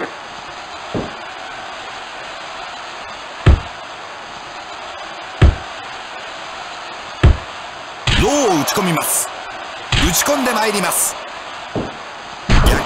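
Heavy blows land with sharp thuds.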